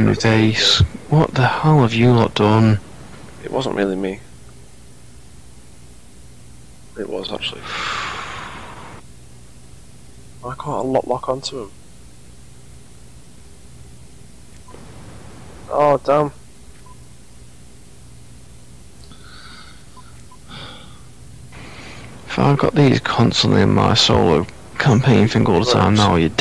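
A man talks with animation close to a microphone, in bursts with pauses.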